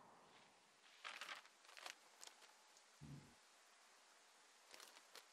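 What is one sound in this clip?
Paper rustles as a map is unfolded.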